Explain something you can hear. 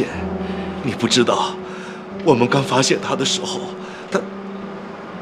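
A young woman speaks tearfully close by.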